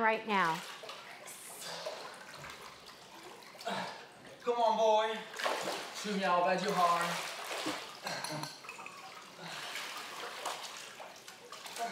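Water splashes and laps as a man swims.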